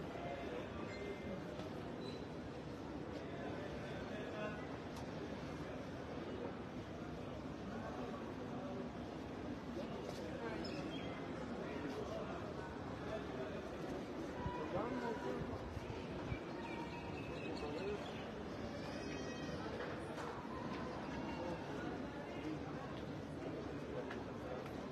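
A crowd murmurs nearby outdoors.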